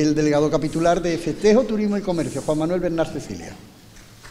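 A man chants loudly through a microphone in an echoing room.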